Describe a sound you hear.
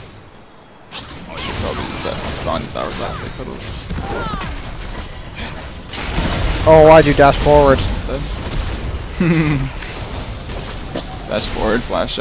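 Game combat effects clash and burst in quick succession.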